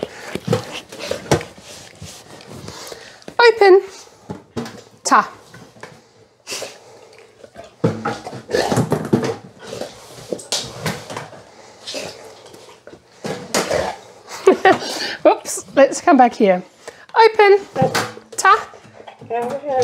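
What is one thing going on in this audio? A dog's paws and nose knock against a plastic box.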